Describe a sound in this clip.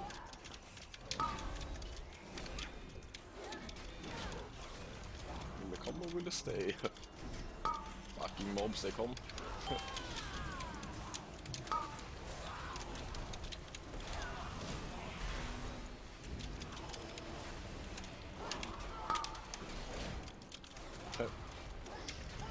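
Game spell effects crackle and whoosh in a busy battle.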